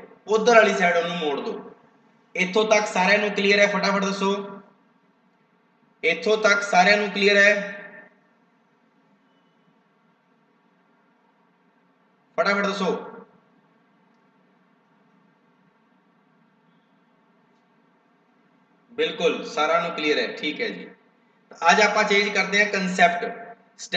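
A young man speaks calmly into a close microphone, explaining in bursts with pauses.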